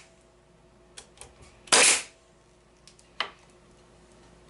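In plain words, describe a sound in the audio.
Wooden pieces knock and clatter.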